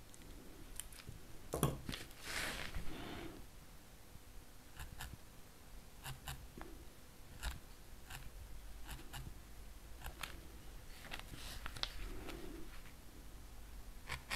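Soft taps and scratches of a needle working against felt and card.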